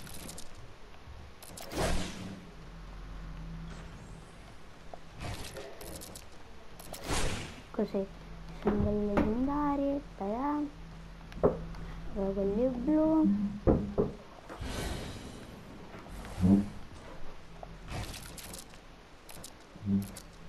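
Building pieces snap into place with sharp clacks.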